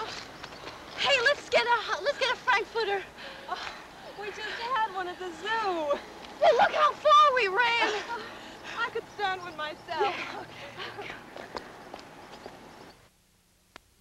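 Young women sing together in high voices.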